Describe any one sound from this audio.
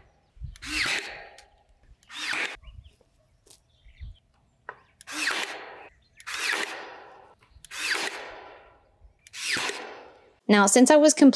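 A staple gun fires sharply into wood again and again.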